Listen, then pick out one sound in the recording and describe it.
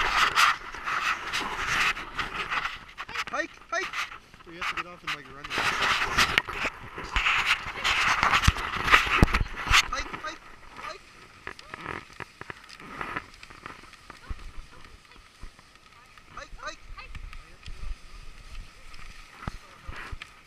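Sled runners hiss and scrape over packed snow.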